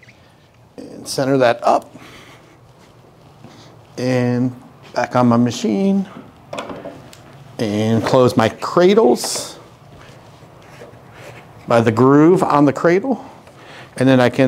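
A man speaks calmly and clearly, close to a microphone.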